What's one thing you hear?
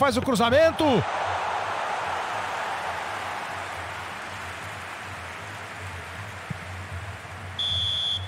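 A stadium crowd roars loudly, then slowly fades.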